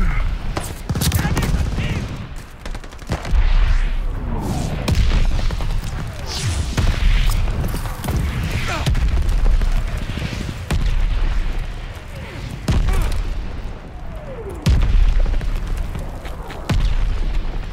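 A double-barrelled shotgun fires with heavy booms in a video game.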